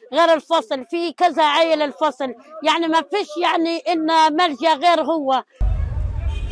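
A middle-aged woman speaks with feeling, close by.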